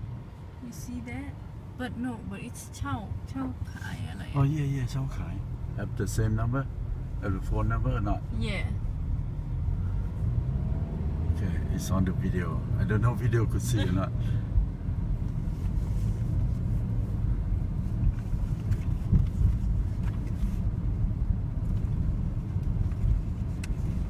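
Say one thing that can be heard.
A car engine hums and rumbles steadily from inside the car.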